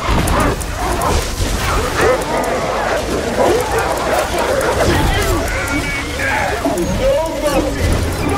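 Electricity crackles and buzzes loudly.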